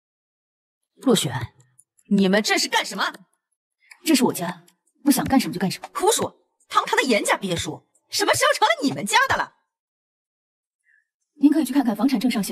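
A young woman speaks coolly and firmly nearby.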